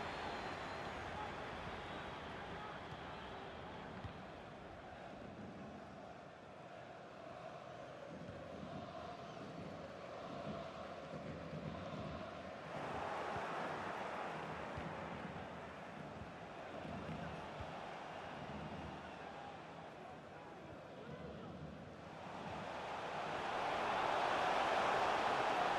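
A large stadium crowd roars steadily, swelling loudly near the end.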